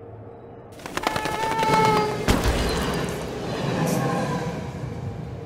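A train's brakes screech.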